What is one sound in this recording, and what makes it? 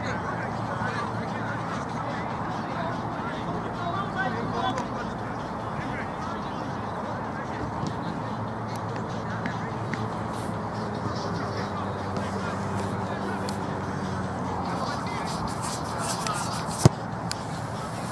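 Players shout to each other across an open outdoor pitch.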